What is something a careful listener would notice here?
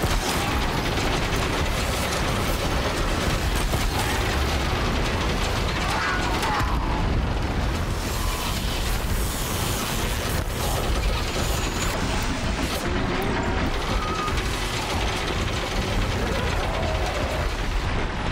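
Electricity crackles and sizzles in sharp bursts.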